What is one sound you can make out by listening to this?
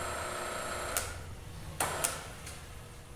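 A metal pipe clanks sharply in a bending machine.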